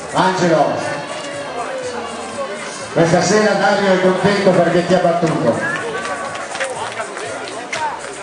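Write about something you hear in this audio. Runners' feet slap on the pavement.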